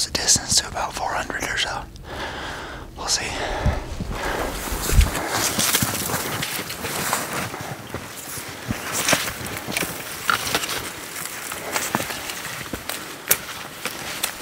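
Branches scrape and rustle against backpacks.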